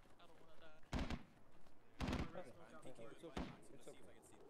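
Rifle shots crack nearby.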